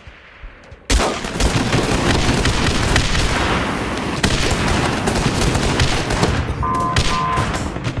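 Gunfire rattles in a video game.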